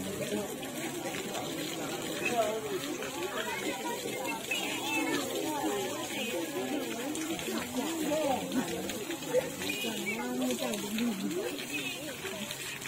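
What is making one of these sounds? Water splashes from a hose onto an elephant.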